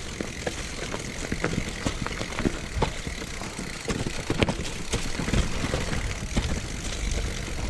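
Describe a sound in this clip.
A bicycle frame clatters and knocks over bumps.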